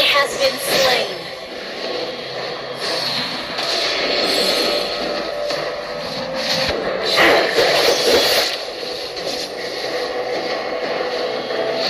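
Game spell effects whoosh and clash in a battle.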